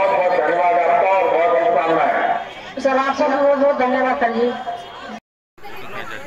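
A man speaks through a loudspeaker in an online call.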